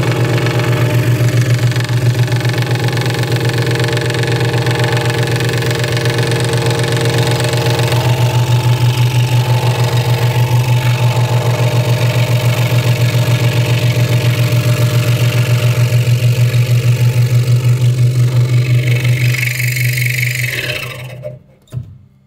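A scroll saw hums and buzzes steadily as its blade cuts through wood, then winds down.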